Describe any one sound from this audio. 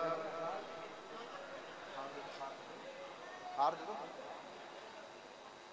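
Several men talk quietly close by, their voices overlapping.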